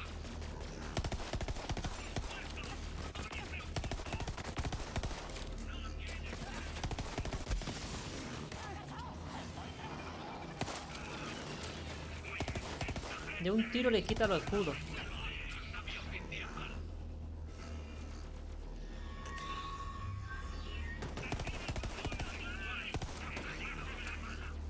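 Game gunfire rattles in rapid bursts.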